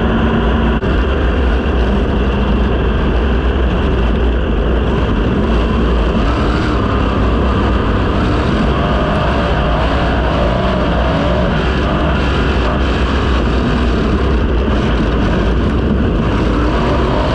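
A racing car engine roars loudly and steadily up close.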